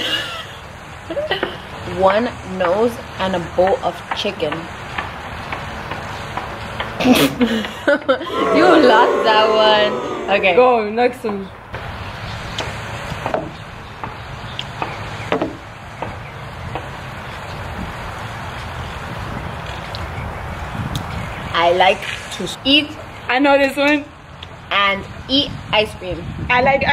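A second young woman talks and laughs close by.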